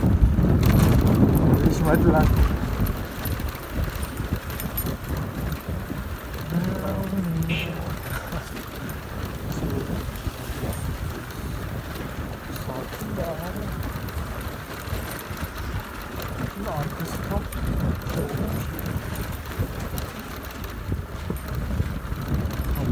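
Wind rumbles past the rider.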